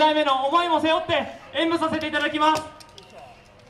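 A group of young women sing loudly in unison.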